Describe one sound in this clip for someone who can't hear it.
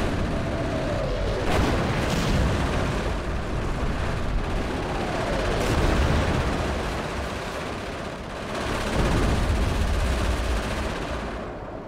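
Shells explode with heavy booms.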